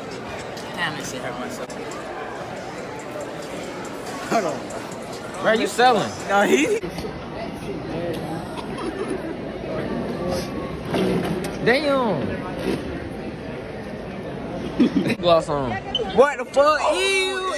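Young men talk and laugh loudly close by.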